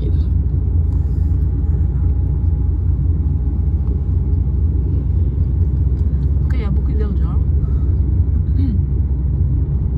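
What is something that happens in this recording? A car engine hums steadily with a low rumble from inside the car.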